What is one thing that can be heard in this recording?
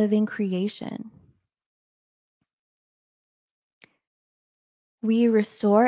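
A young woman speaks calmly and close into a microphone, pausing between phrases.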